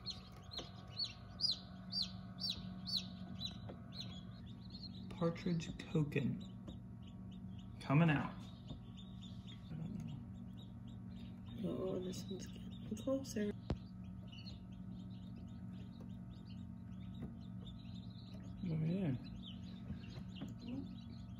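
Newly hatched chicks cheep in quick, high chirps.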